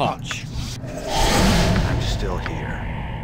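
A magic spell goes off with a shimmering whoosh.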